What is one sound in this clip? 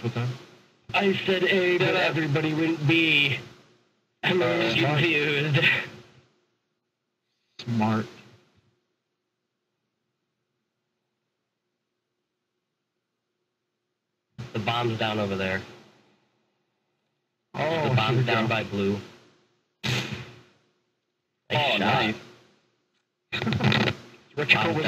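A man talks with animation into a close microphone, in bursts with pauses.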